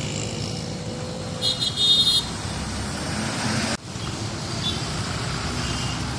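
A bus engine runs nearby.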